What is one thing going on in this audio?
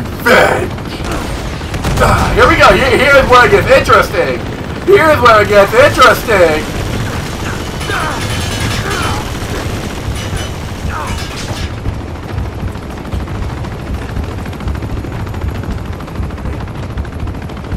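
A helicopter's rotor thumps nearby.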